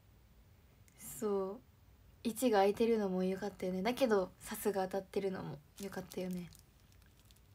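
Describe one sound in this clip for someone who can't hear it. A young woman speaks softly and casually, close to a microphone.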